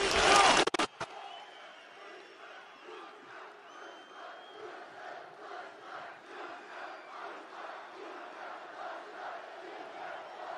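A large crowd chants in a steady rhythm outdoors.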